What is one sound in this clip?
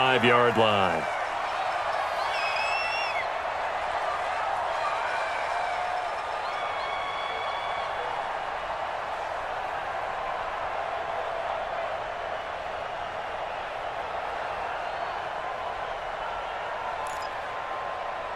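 A large crowd roars steadily in a big stadium.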